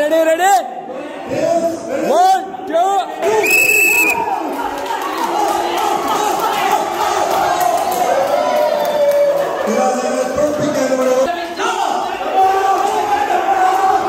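A group of men shout and cheer with excitement in an echoing hall.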